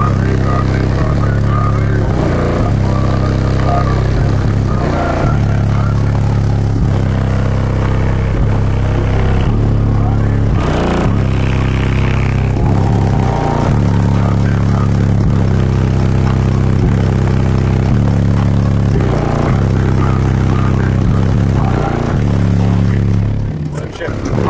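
Loud music with heavy, pounding bass plays from a car stereo.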